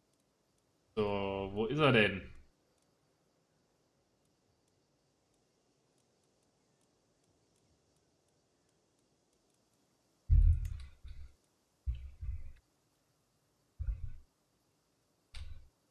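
A young man speaks close to a microphone, in short bursts with long pauses.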